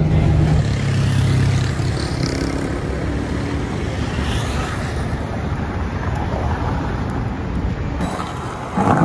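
Traffic passes on a nearby street.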